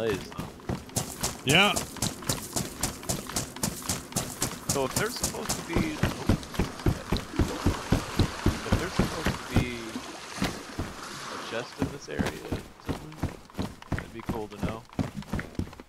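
Footsteps thud quickly on wooden planks.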